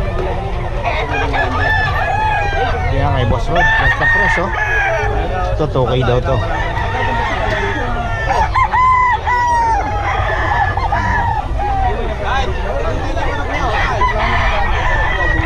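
Many roosters crow loudly all around.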